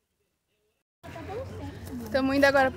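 A young person speaks with animation, close by, outdoors.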